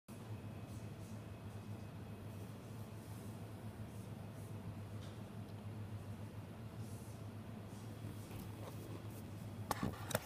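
A marker squeaks faintly across paper in short strokes.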